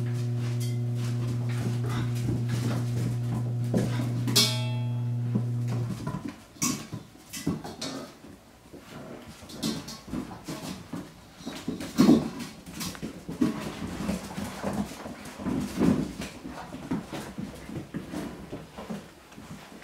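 Puppy claws patter and skitter on a hard floor.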